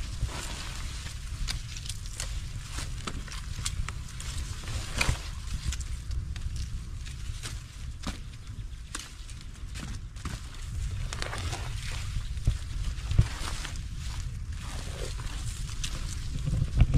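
Wind rumbles outdoors against the microphone.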